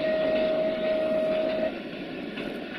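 A train horn sounds a steady blast, then stops.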